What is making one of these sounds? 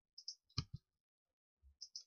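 A block breaks with a short crunchy thud.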